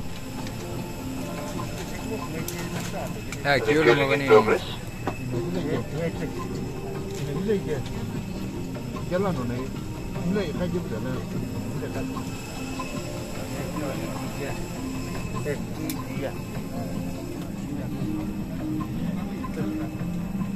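Several men talk nearby in a murmur of voices.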